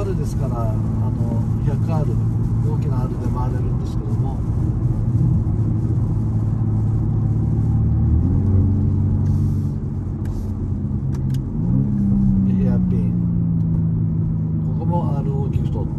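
A middle-aged man talks calmly from close by.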